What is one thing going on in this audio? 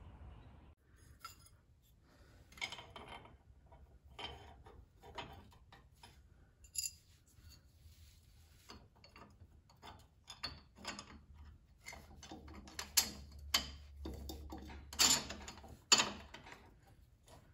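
Metal parts clink and tap under a hand.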